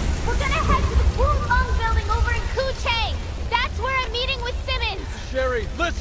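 A young woman calls out urgently.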